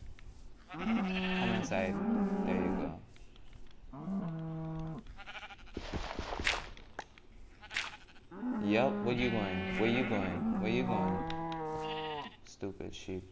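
Cows moo loudly.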